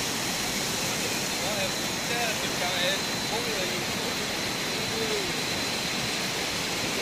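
Water rushes and splashes steadily over rocks nearby.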